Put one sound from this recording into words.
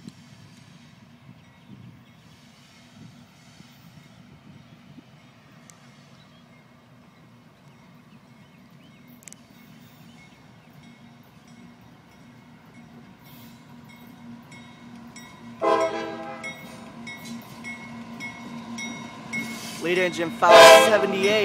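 A diesel locomotive rumbles as it approaches, growing louder.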